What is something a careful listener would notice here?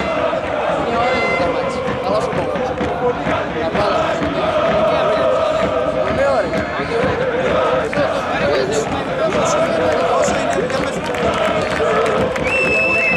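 A large stadium crowd chants and sings loudly.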